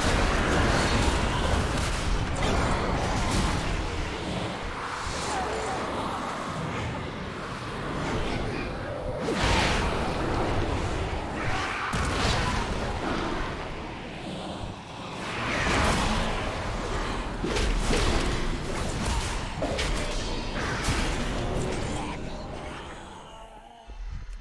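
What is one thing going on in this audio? Spell blasts and weapon strikes crash and whoosh in quick succession.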